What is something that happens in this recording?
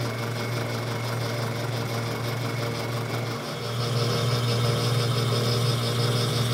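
A metal lathe motor hums steadily.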